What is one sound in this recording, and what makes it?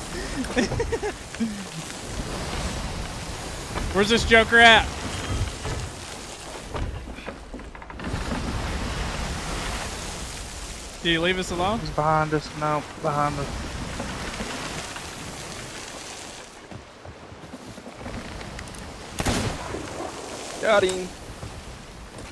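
Stormy waves roar and crash against a ship.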